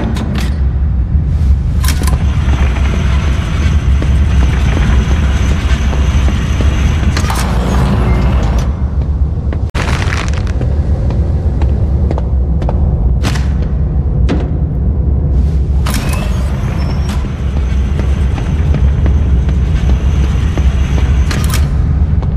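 Trolley wheels rumble steadily across a hard floor.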